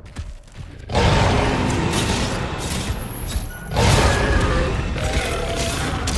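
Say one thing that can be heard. A huge beast roars loudly.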